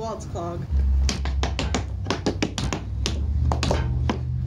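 Tap shoes click and stamp rapidly on a wooden floor.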